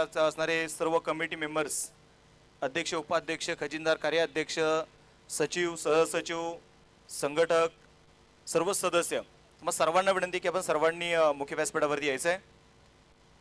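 A young man speaks with animation into a microphone through a loudspeaker, with pauses.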